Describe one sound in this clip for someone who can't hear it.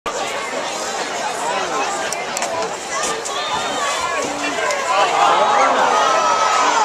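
A crowd of spectators talks and cheers outdoors.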